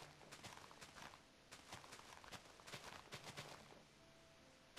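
Grass rustles and pops as a game character breaks it.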